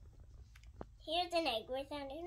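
A young girl speaks up close in a high voice.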